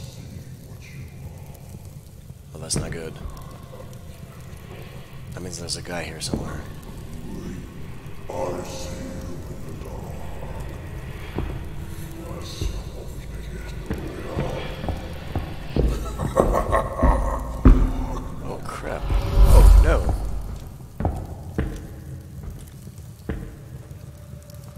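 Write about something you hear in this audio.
A torch flame crackles close by.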